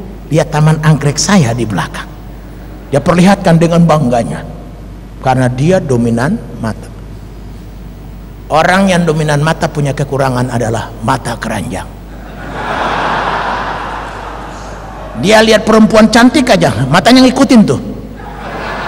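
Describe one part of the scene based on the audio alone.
A middle-aged man speaks with animation through a microphone and loudspeakers.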